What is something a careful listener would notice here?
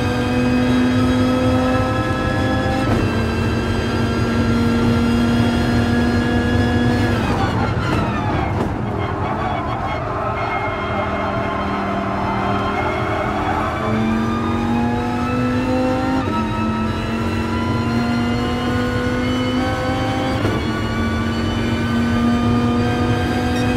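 A racing car engine roars loudly, its pitch climbing through the gears and dropping sharply under braking.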